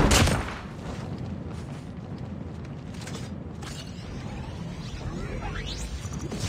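Footsteps thud quickly over grass.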